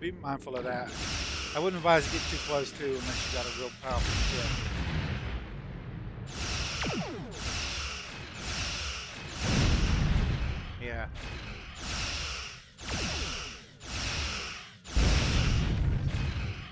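Weapons fire in bursts with booming explosions.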